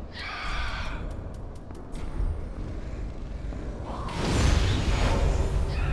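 Armour clinks with heavy footsteps.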